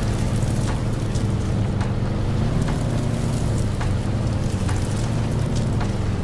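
Tank tracks clank and rattle.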